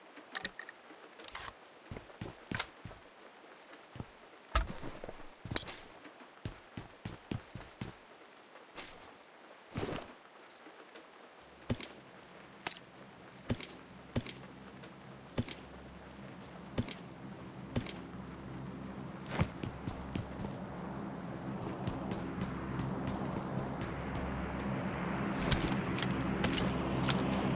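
Items click sharply as they are picked up.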